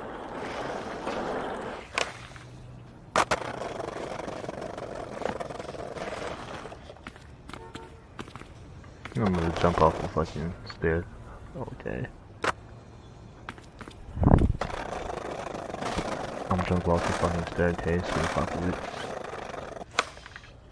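Skateboard wheels roll over pavement with a rumbling roar.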